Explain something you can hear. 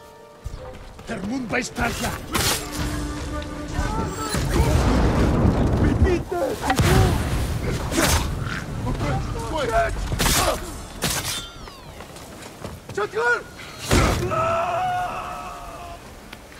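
Armoured men grunt and cry out in combat.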